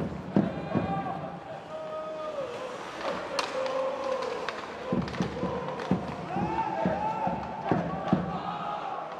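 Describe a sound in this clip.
Hockey sticks clack sharply against a puck on the ice.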